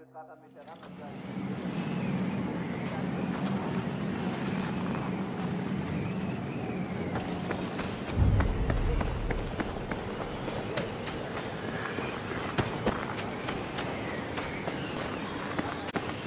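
Wind howls steadily outdoors.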